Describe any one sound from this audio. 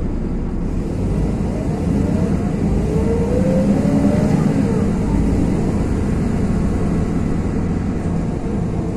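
Small loaders' engines roar close by.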